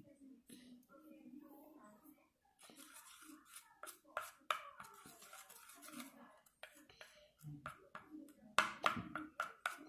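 Small plastic clicks and scrapes come from a plastic object handled in someone's hands.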